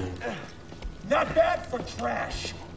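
A man speaks gruffly.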